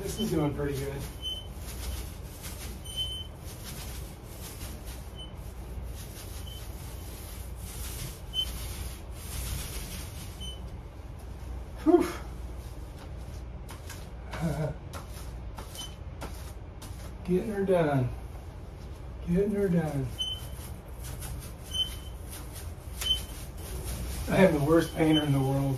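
A paint roller rolls softly across a wall.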